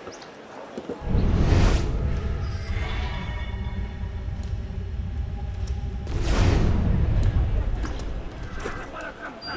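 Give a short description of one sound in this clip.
Wind rushes loudly past during a long fall.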